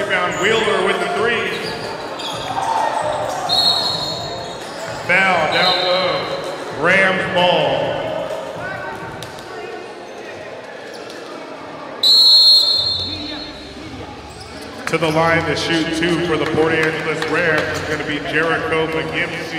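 A crowd murmurs and cheers in the stands.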